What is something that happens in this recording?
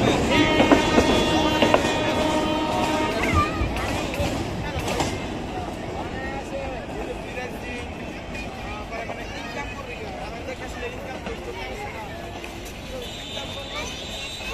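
A locomotive engine rumbles and fades into the distance.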